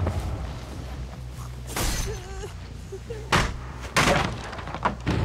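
Wooden planks crack and splinter under heavy blows.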